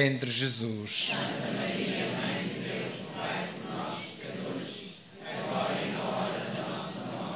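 A man speaks calmly through a microphone in a reverberant space.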